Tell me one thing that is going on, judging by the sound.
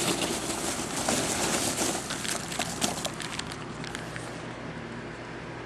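Foam packing pieces rustle and squeak as a hand digs through them.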